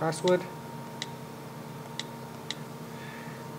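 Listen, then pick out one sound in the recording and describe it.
A tablet's keyboard gives soft clicks as keys are tapped.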